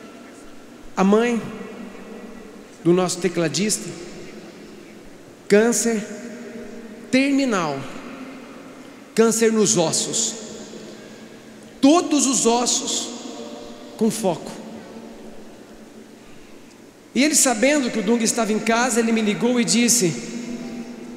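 A man speaks loudly into a microphone in short bursts, heard through loudspeakers in a large echoing space.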